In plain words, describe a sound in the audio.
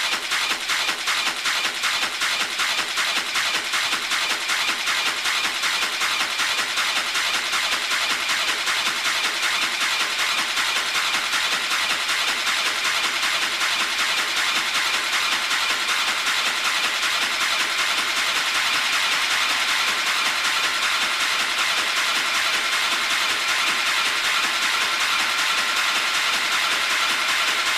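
Fast electronic dance music plays with a steady, quick beat.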